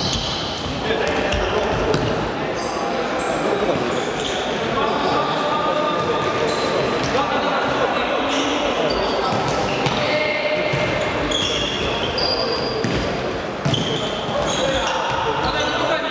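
A futsal ball thumps off a foot in an echoing hall.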